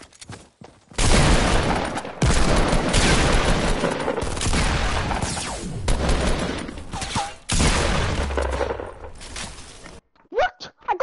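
Loud noisy video game action sounds roar and crackle.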